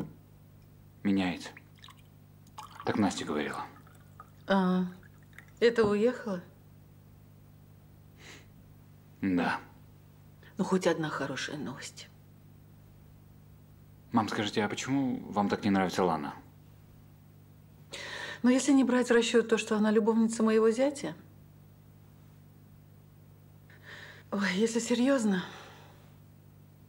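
A woman speaks with feeling, close by.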